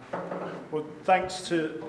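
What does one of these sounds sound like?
A young man begins speaking into a microphone.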